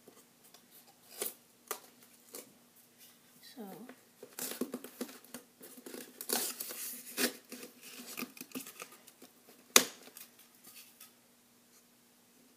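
Plastic and cardboard packaging rustles and crinkles close by.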